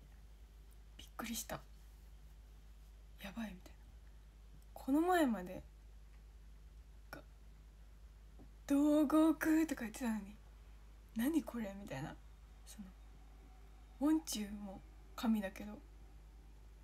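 A young woman speaks close to the microphone in short, lively bursts with pauses.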